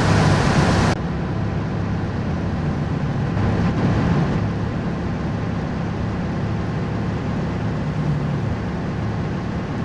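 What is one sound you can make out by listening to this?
A truck engine hums steadily, muffled inside the cab.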